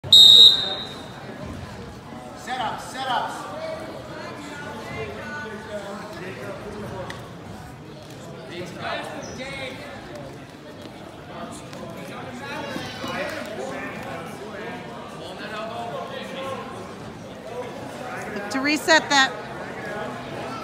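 A crowd of spectators chatters and shouts in an echoing gym.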